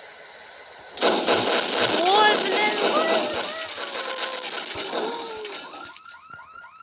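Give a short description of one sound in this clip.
Gas cylinders explode with a loud blast in a video game.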